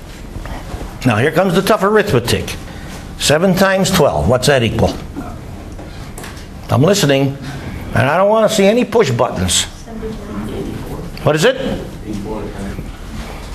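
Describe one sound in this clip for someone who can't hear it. An elderly man speaks calmly in an echoing room.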